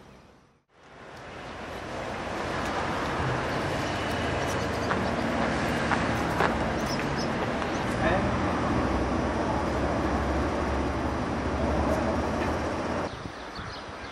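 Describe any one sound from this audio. Wind blusters across an open outdoor area.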